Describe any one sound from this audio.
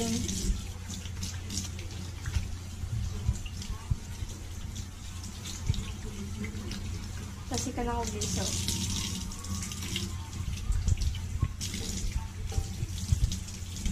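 Hands rub and splash under running water.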